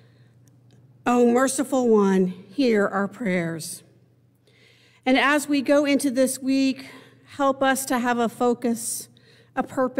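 An elderly woman speaks slowly and solemnly into a microphone.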